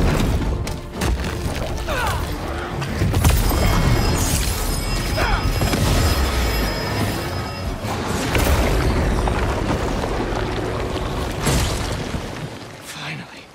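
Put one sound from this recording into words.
Heavy blows thud and crash in a fierce fight.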